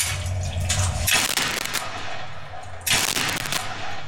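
A gun fires several shots close by.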